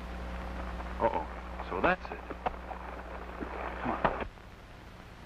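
A man speaks loudly outdoors.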